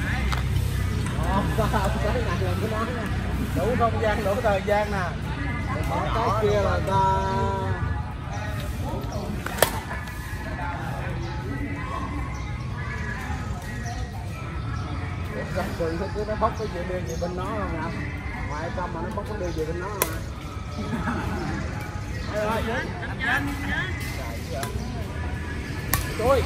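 Adult men and women call out and chat outdoors.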